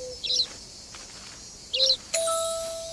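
Small birds chirp.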